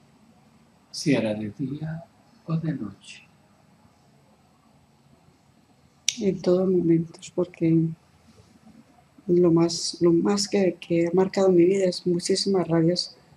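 A middle-aged woman speaks slowly and softly, close by, in short bursts.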